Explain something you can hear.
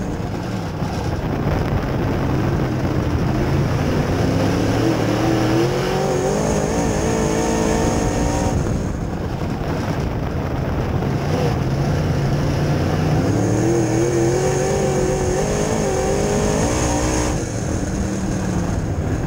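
A race car engine roars loudly from close by, rising and falling as the car speeds around the track.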